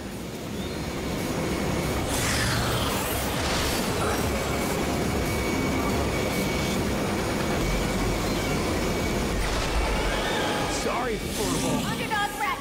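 Hover vehicles whoosh and roar steadily as they race.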